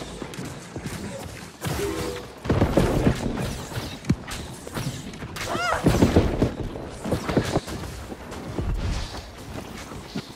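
Magic blasts whoosh and burst.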